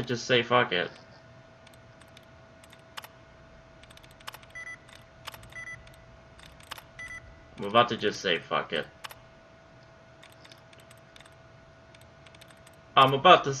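A computer terminal clicks as keys are pressed.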